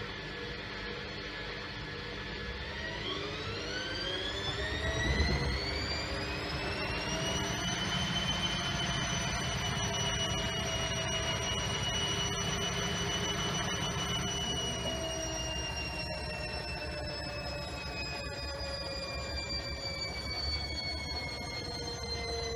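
A washing machine drum turns with a low rumble.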